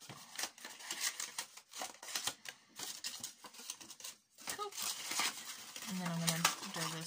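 Stiff paper rustles and crinkles as hands fold it.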